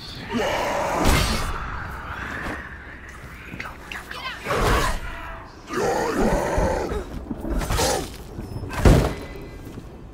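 A sword clashes hard against a shield with heavy metallic blows.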